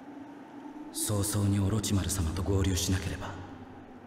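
A young man speaks in a low, calm voice.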